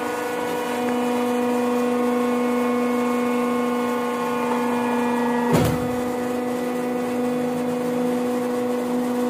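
A machine hums loudly and steadily.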